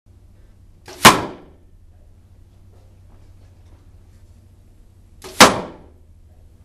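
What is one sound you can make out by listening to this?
An arrow strikes a target with a sharp thwack.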